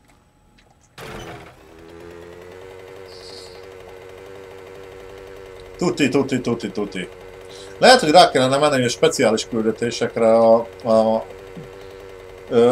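A small motorbike engine drones steadily.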